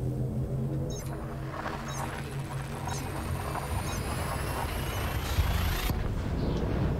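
A rushing whoosh builds up and then cuts off abruptly.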